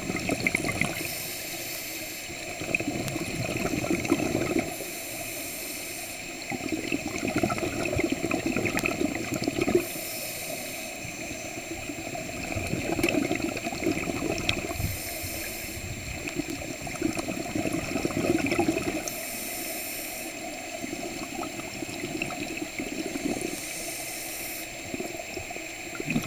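A diver breathes in through a regulator with a hissing rasp.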